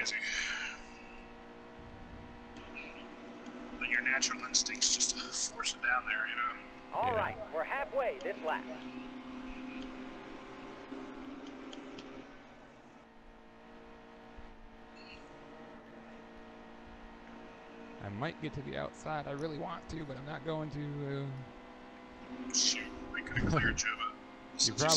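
A race car engine roars at high speed.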